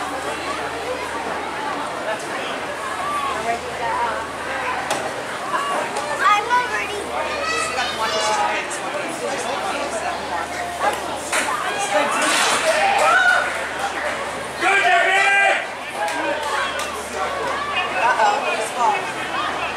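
Young girls shout and call out to each other outdoors.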